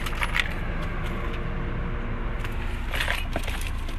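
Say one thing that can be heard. A cardboard box rustles as it is handled.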